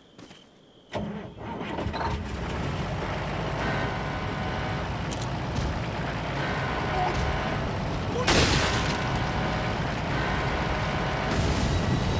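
A truck engine rumbles loudly.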